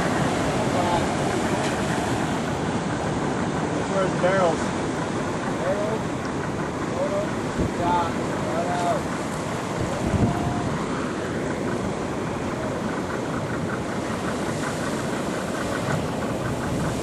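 Water sloshes and splashes close by.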